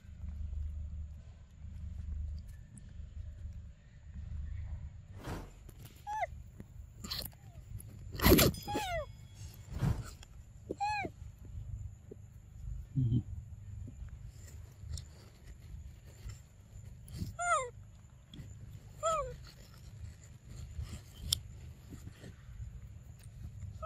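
A young monkey chews on soft fruit.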